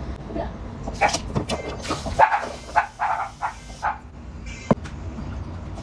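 A metal bowl clatters against a sink.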